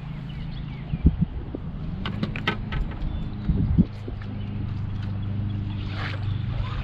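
A fishing reel clicks and whirs as line is reeled in.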